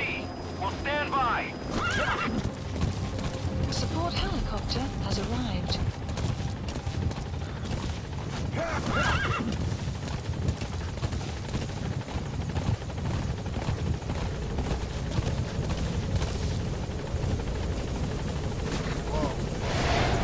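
A horse gallops steadily over dry ground, its hooves thudding.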